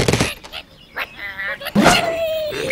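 A rubbery slingshot creaks as it is pulled back.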